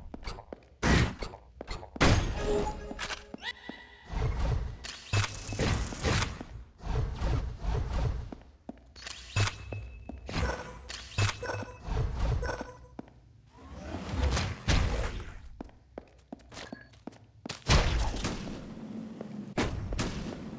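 A sword slashes with sharp whooshes.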